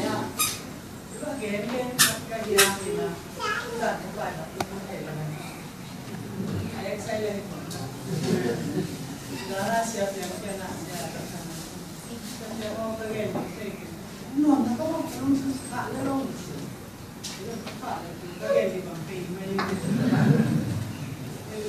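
An older woman speaks steadily into a microphone, heard through a loudspeaker in a room.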